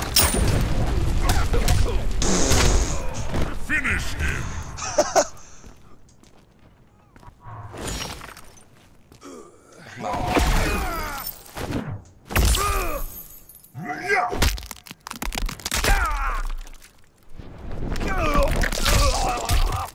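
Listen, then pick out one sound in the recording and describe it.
Fighting game blows land with heavy thuds and crunches.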